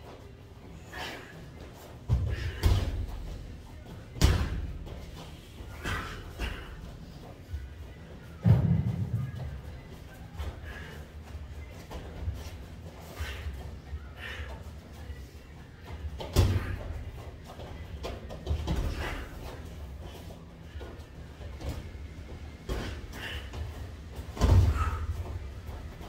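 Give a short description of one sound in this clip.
Boxing gloves thud against each other in sharp bursts.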